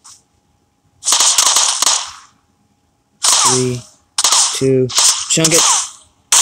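A smoke grenade pops and hisses loudly.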